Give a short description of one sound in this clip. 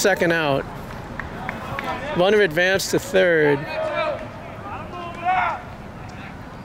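A man shouts and calls out loudly close by, outdoors.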